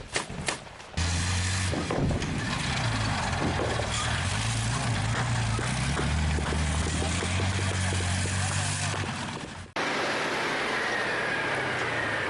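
A tank engine rumbles deeply as the tank drives along.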